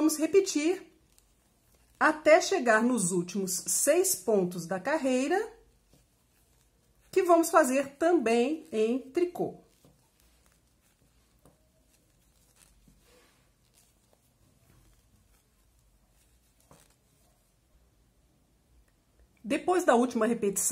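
Plastic knitting needles tick softly against each other.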